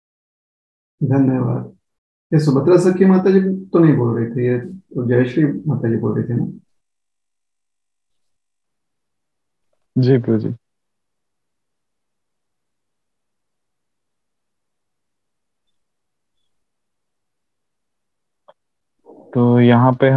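A man speaks calmly through an online call, with long pauses.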